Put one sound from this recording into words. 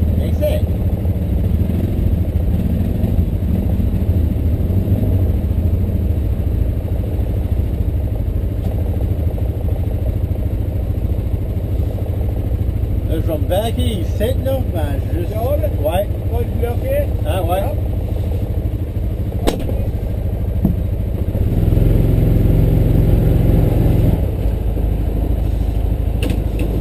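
Quad bike engines idle with a low, steady rumble.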